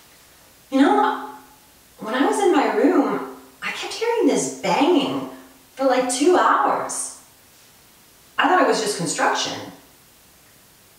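A young woman sings expressively, close by.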